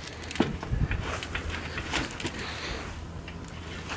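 A wooden frame thumps and scrapes as a man kicks it.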